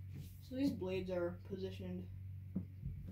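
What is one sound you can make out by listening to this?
A boy speaks briefly and calmly, close by.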